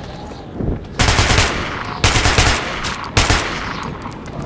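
Rifle shots fire in loud bursts.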